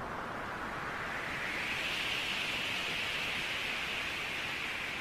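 A rushing surge of water roars and hisses.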